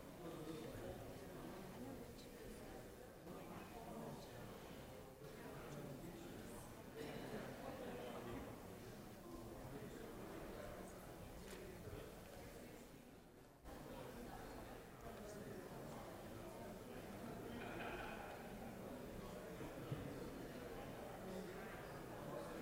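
Men and women murmur and chat quietly in a large echoing hall.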